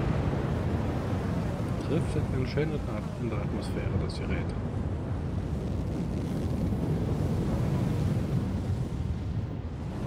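A spacecraft's engines rumble low and steady.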